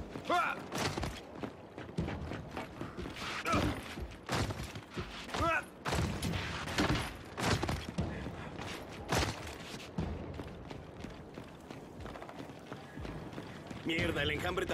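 Heavy boots thud on stone as a soldier runs.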